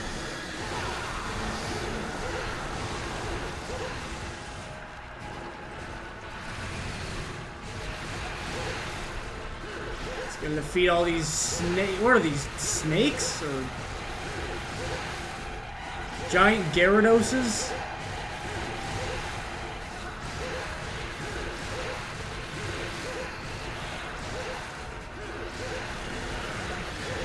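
Swords slash and clang in a fast fight.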